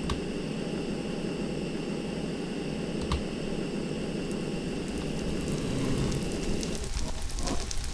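A jetpack engine hums steadily.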